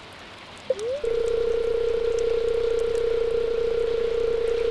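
A steady, rapid electronic blipping plays.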